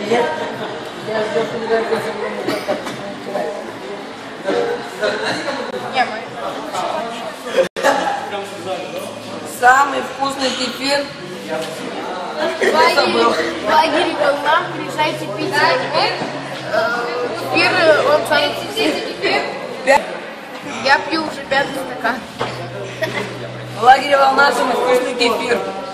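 Many young people chatter in a large echoing hall.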